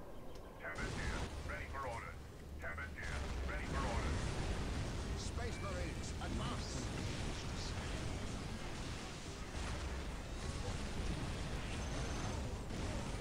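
Rapid gunfire rattles in a loud battle.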